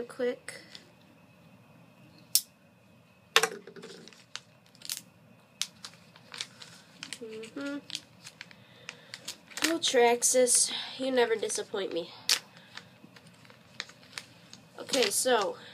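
Plastic packaging crinkles and tears in a boy's hands.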